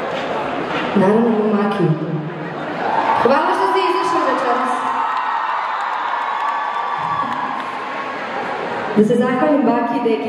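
A young woman sings into a microphone, heard through loudspeakers.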